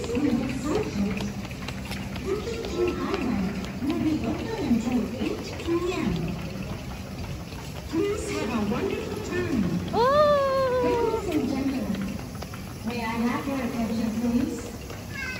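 A young child babbles and squeals nearby.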